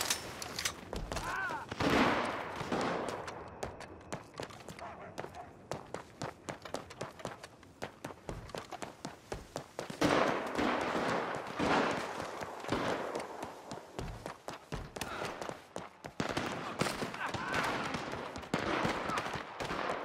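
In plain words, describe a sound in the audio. Footsteps run on a paved street.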